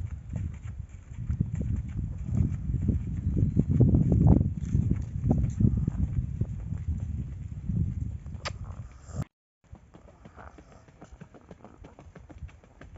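A horse's hooves clop slowly on a dirt road.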